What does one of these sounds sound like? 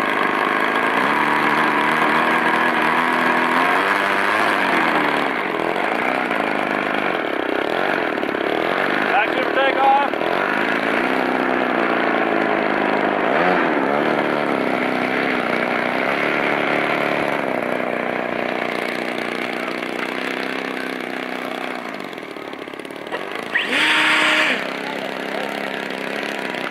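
A model airplane engine revs up and down as it taxis across grass.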